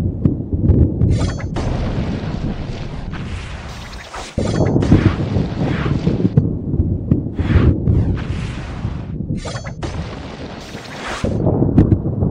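Magic spells whoosh and burst in a game battle.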